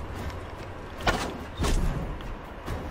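An arrow whooshes off a tight bowstring.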